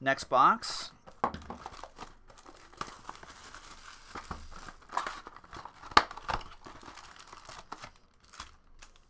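Plastic wrapping crinkles and tears as a box is opened.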